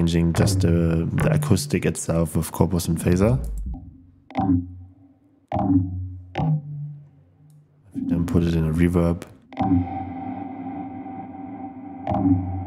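Electronic synthesizer notes play in short bursts with pauses between them.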